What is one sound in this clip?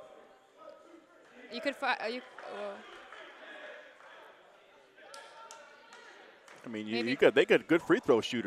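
Men and boys talk and call out in a large echoing gym.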